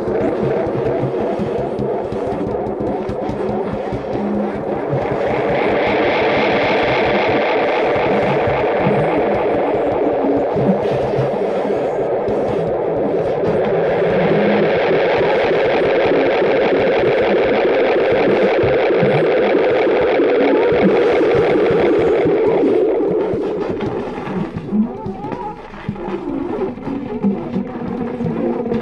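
A baritone saxophone plays low, growling notes up close.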